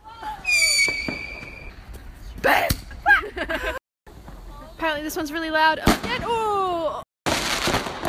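A firework rocket whistles as it shoots upward.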